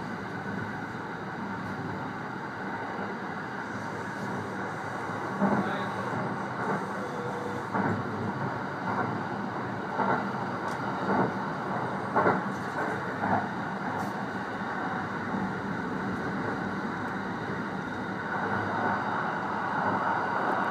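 An electric train rumbles along the rails, heard from inside the driver's cab.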